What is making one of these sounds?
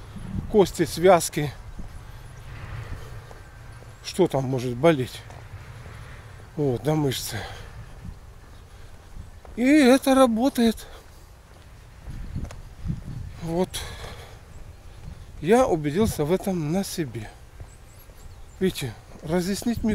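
An elderly man speaks calmly in bursts close by, outdoors.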